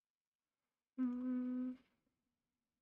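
A young woman talks briefly into a microphone.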